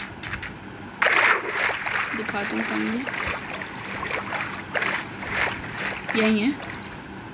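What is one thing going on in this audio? Water splashes and swirls around a swimmer.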